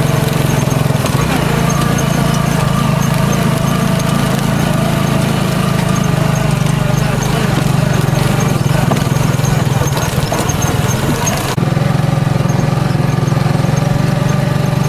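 A vehicle's body rattles and bumps over uneven dirt.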